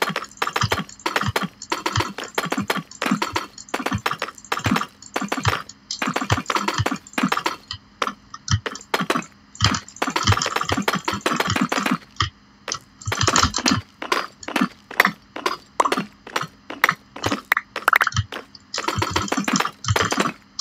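Stone blocks clack as they are placed, one after another.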